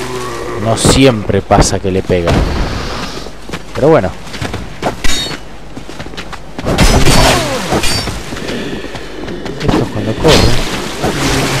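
Metal weapons clash and strike in a fight.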